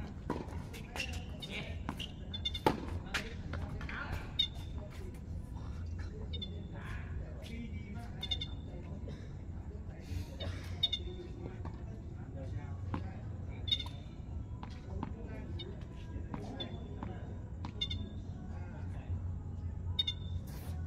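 Shoes squeak on a hard court.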